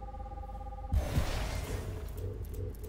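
A short game menu whoosh sounds as a selection is made.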